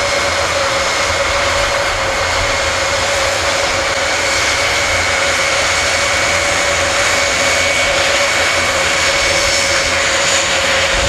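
Turboprop engines of a large plane roar and whine steadily close by as it taxis.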